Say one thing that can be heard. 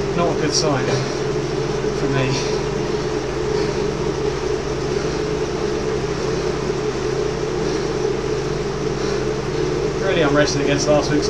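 A man speaks briefly and breathlessly, close to a microphone.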